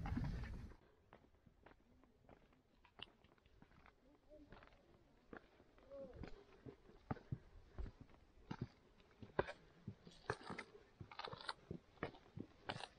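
Shoes scuff and tap on bare rock.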